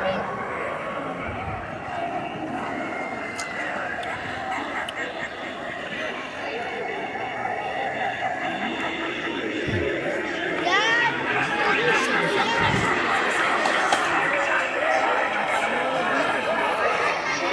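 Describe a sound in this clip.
A crowd of adults and children chatters outdoors.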